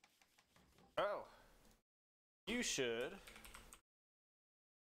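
A young man speaks animatedly into a close microphone.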